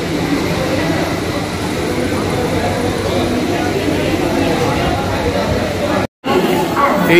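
A crowd murmurs with many voices in a busy indoor hall.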